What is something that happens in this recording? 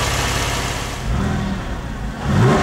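A car engine revs up briefly, twice.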